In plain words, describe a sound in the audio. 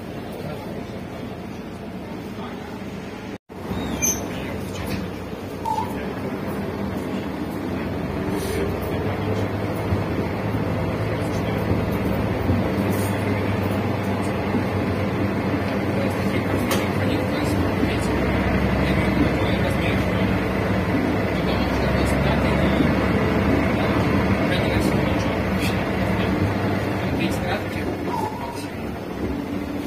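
Loose fittings rattle and clatter inside a moving bus.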